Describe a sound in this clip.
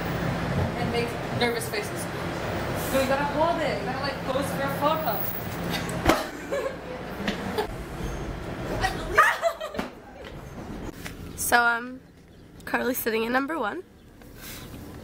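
A young woman shouts and sings loudly close by.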